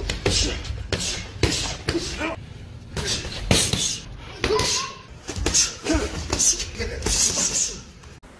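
Boxing gloves thud against pads and bodies in quick bursts.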